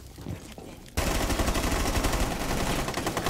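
Rapid gunshots ring out close by.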